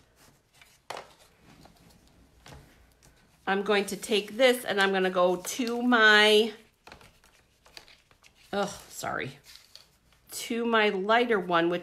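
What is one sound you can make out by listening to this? Card paper rustles and shifts.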